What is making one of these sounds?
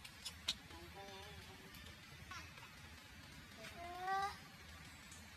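A baby monkey squeals with thin, wavering cries close by.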